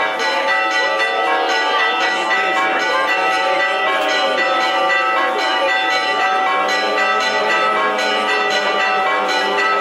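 A crowd of men and women chants a slow hymn outdoors.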